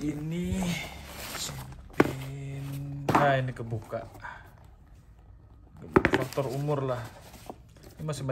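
A nylon drawstring bag rustles as hands rummage in it.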